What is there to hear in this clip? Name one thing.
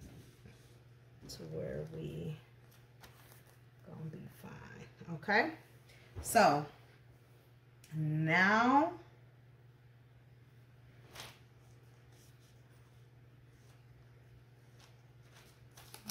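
Hands smooth and rustle a sheet of paper.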